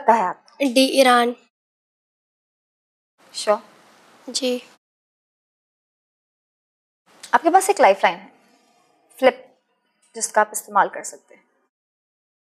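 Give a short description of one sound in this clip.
A teenage girl speaks quietly and hesitantly.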